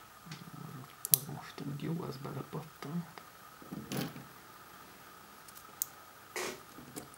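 Small plastic parts click and snap as hands handle them.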